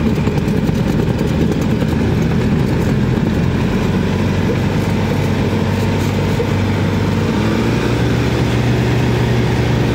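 A small propeller plane's engine drones loudly and steadily from inside the cockpit.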